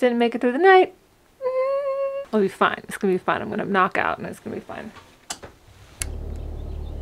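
A young woman talks playfully close by.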